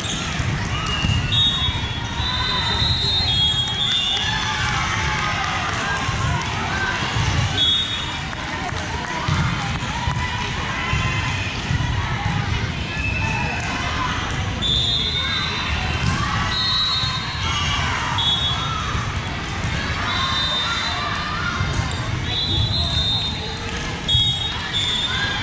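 Sneakers squeak sharply on the hardwood court.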